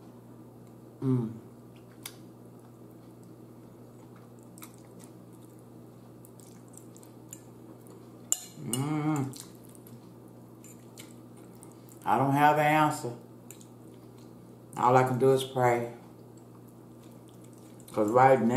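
A woman speaks calmly and close to a microphone, in short bursts between bites.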